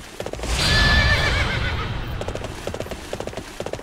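A sword whooshes in a sweeping slash.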